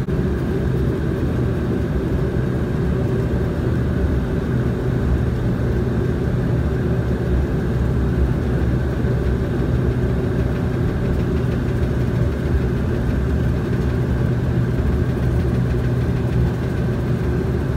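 A propeller aircraft's engines drone steadily from inside the cabin.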